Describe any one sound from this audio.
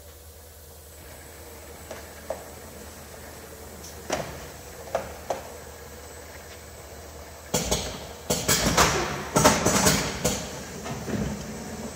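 A packaging machine runs with clicks and clatters of moving parts.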